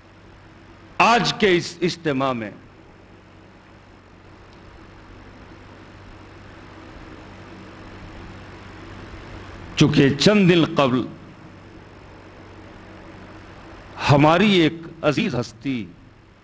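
A middle-aged man speaks solemnly into a microphone in short bursts, with long pauses, heard through a loudspeaker.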